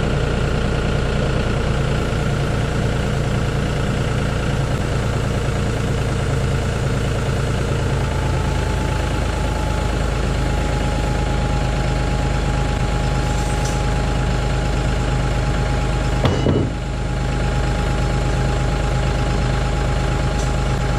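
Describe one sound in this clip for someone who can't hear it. A tractor engine idles close by with a steady low rumble.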